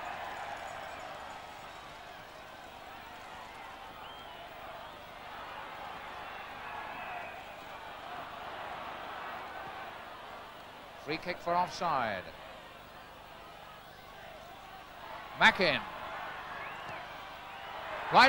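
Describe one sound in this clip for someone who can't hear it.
A large crowd murmurs at a distance.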